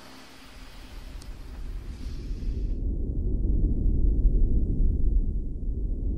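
Wind blows hard and rumbles outdoors.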